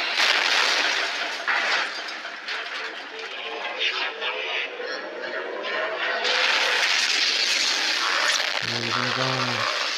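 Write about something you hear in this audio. Heavy guns fire in loud rapid bursts.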